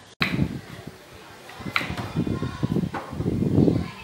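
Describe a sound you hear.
A knife chops through something firm on a wooden board.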